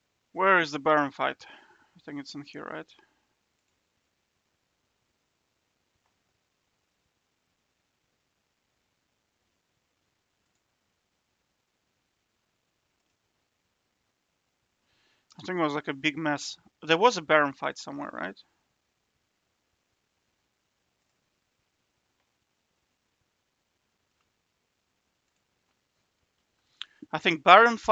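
A man speaks calmly into a close microphone, in short bursts with long pauses.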